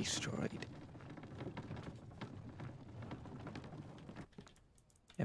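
A wooden cart rumbles and clatters as it rolls along.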